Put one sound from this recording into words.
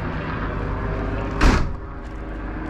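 A hand pats a van's metal panel.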